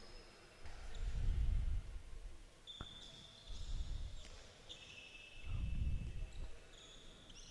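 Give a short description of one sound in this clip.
A ball bounces with dull thuds on a hard floor in an echoing hall.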